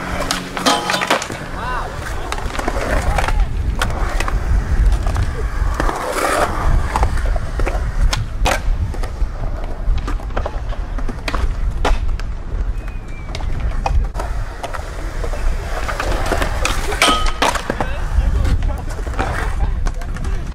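A skateboard clacks sharply as it lands and pops.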